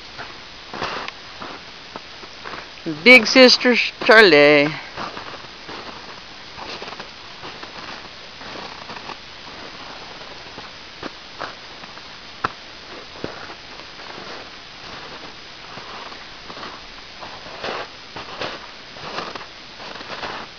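Dogs' paws crunch through snow.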